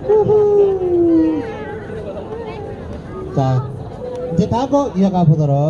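A young man sings loudly into a microphone through loudspeakers outdoors.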